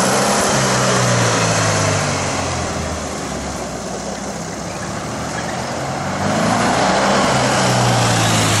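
A small car engine revs loudly, dips, then roars again up close.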